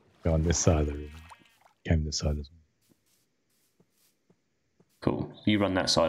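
A sheep bleats nearby.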